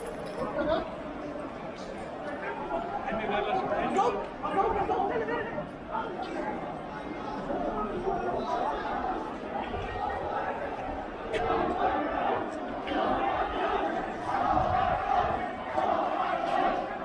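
A crowd of men and women talks and calls out outdoors in a street.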